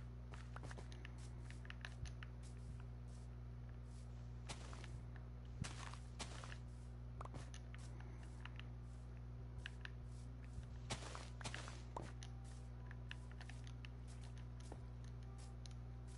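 Dirt crunches in short bursts as it is dug.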